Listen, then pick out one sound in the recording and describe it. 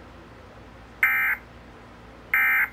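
A television emits short, loud electronic alert beeps.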